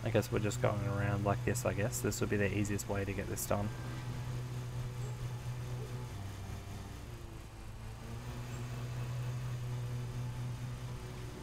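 A riding mower engine hums steadily.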